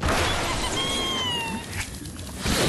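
A bird character squawks as it flies through the air.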